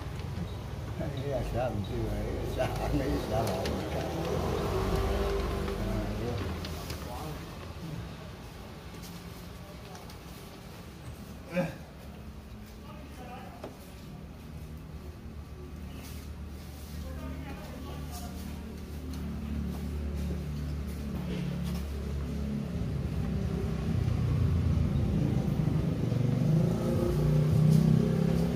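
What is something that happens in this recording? Stiff paper rustles and taps as it is handled close by.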